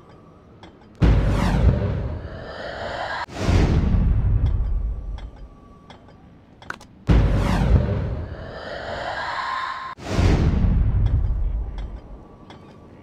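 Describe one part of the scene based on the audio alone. Loud explosions boom and rumble, one after another.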